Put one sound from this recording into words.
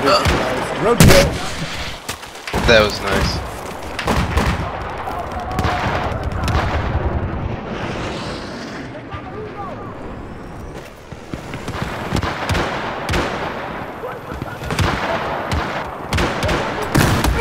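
A rifle fires with sharp, loud cracks.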